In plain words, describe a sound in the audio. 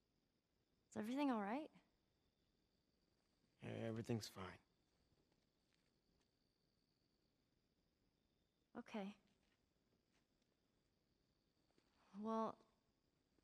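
A teenage girl speaks calmly up close.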